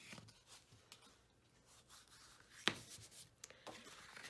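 A hand smooths paper flat on a table with a soft swish.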